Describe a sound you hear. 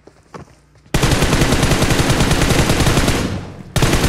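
A rifle fires a rapid burst at close range.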